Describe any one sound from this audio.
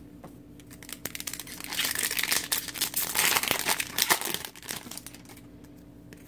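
A plastic card wrapper crinkles and rustles close by.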